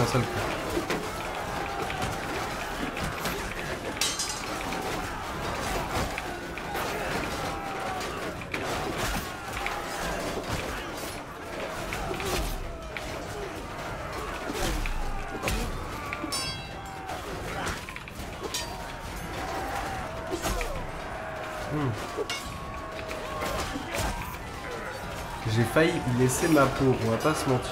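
Metal weapons clash and clang in a battle.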